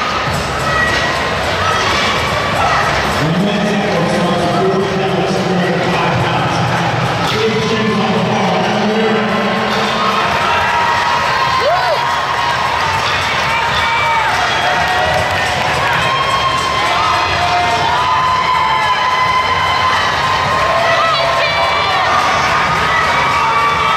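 A crowd of people shouts and cheers in a large echoing hall.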